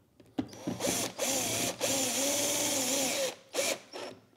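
A cordless drill whirs as it drives a screw in.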